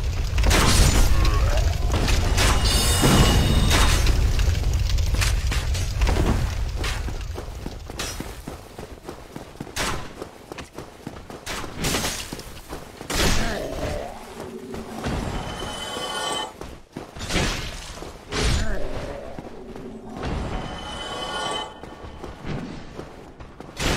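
Heavy footsteps thud and clatter on stone.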